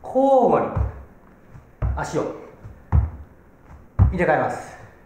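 Feet thump on a mat in steady steps.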